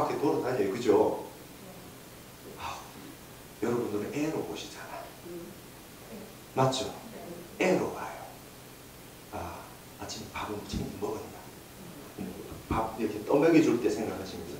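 A middle-aged man lectures through a microphone with animation, in pauses and bursts.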